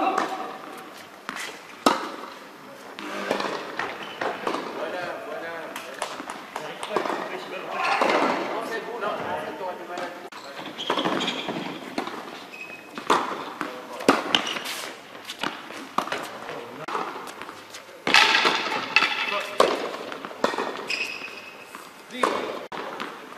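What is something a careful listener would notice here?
Tennis balls bounce on a hard court.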